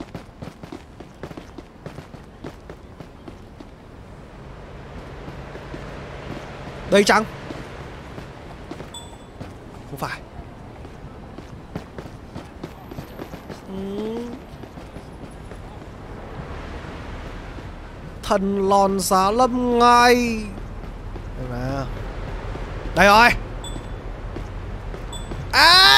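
Footsteps tap on a stone pavement at a brisk pace.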